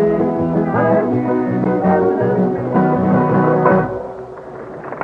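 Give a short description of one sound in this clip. A string band plays a lively tune on fiddle, banjo and guitar.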